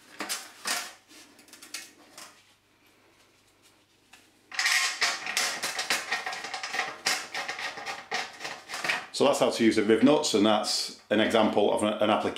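A metal frame knocks and rattles as it is handled.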